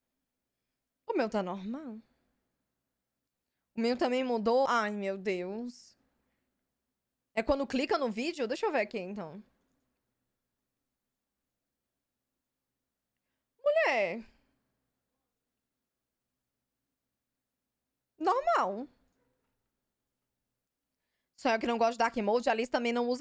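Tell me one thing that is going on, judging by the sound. A young woman speaks close to a microphone in short, lively bursts with pauses between them.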